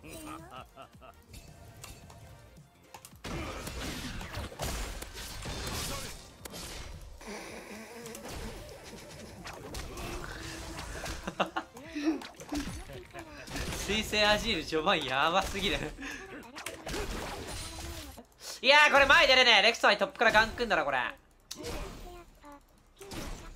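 Fantasy game battle effects whoosh, clash and crackle.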